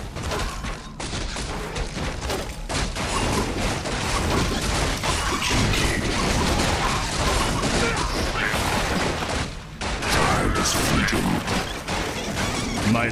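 Magic blasts crackle and boom.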